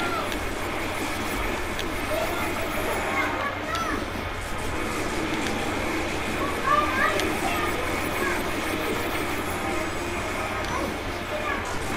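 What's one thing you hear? Energy blasts zap and crackle over and over.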